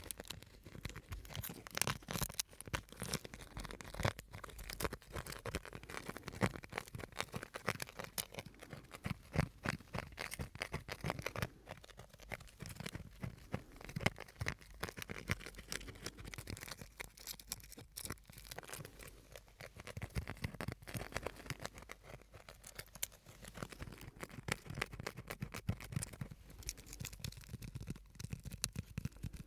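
Fingers tap and scratch on a small object right at a microphone.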